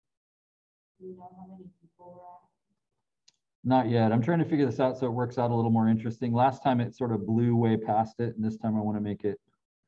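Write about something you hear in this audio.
An older man speaks calmly through an online call microphone.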